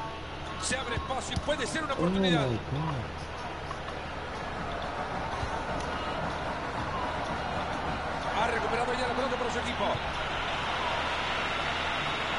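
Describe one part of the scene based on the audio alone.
A stadium crowd roars steadily in the background.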